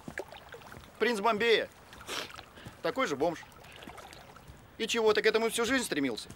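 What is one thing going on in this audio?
A second man answers in a relaxed voice close by.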